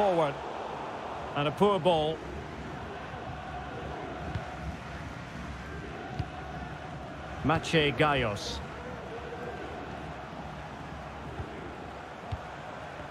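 A large stadium crowd murmurs and hums steadily.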